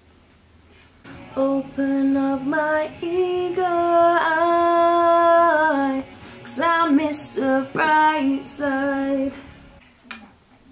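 A young woman sings loudly close by.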